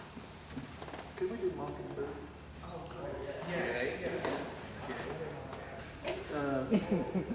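A man talks casually at a distance.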